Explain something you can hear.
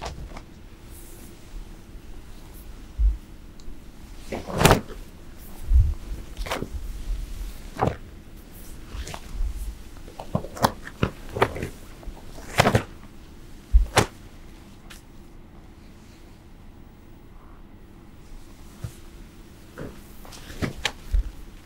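Long fabric sleeves swish sharply through the air.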